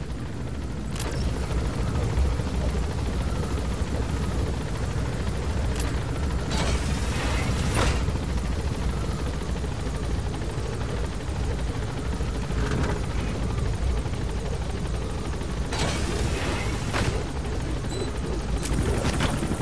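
A helicopter's rotor and engine drone steadily close by.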